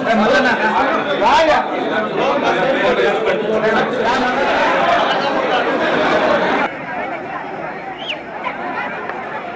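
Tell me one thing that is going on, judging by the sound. A crowd of men talks and shouts excitedly close by.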